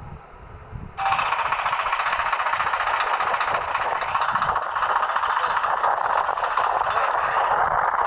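Tractor wheels churn and splash through wet mud.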